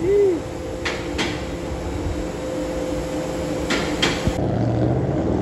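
A vehicle engine runs with a low, steady rumble.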